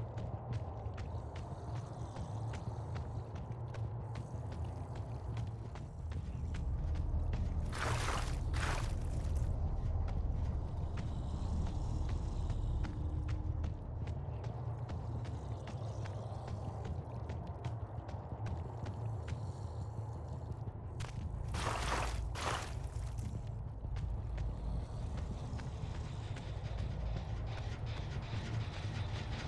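Heavy footsteps thud steadily over a hard floor.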